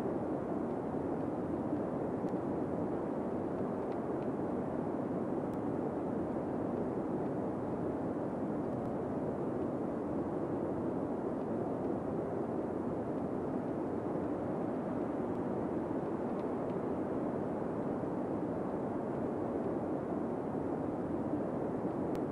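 Dense traffic hums steadily on a busy highway.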